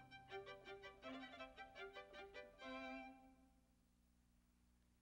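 A cello plays a closing phrase and the last note rings away in a hall.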